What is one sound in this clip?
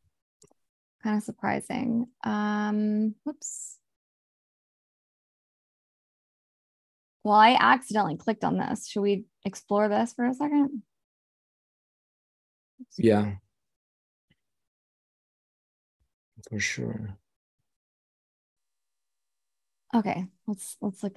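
A woman talks casually over an online call.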